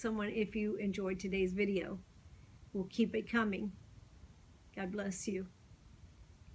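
An older woman speaks calmly and close by, with pauses.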